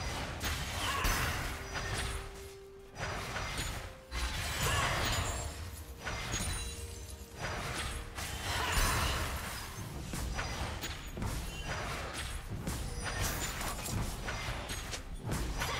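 Magic blasts and sword clashes ring out in a fast video game battle.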